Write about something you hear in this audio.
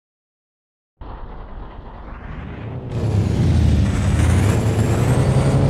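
A truck engine rumbles loudly.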